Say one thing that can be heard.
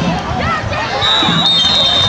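A whistle blows shrilly.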